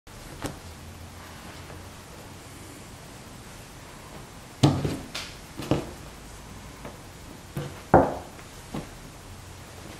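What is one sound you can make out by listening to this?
Cloth rustles and swishes as a garment is folded.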